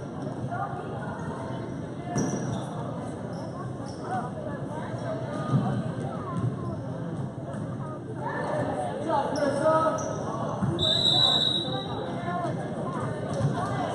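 A crowd of spectators chatters in a large echoing gym.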